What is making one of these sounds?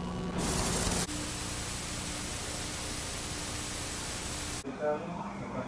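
Tape static hisses steadily.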